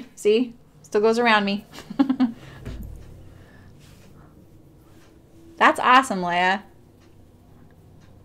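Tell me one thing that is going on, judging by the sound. Fabric rustles as hands fold it.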